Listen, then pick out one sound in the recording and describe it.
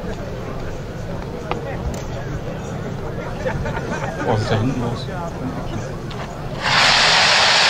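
Fireworks crackle and pop in the distance.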